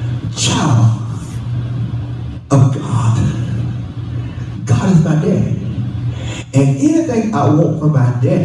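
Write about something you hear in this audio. A man preaches with animation into a microphone, heard through loudspeakers in an echoing room.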